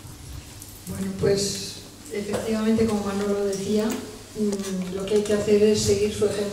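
A woman speaks into a microphone in an echoing room.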